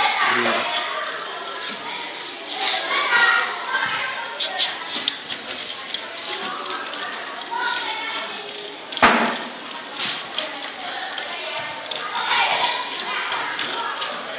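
Young children talk and murmur nearby.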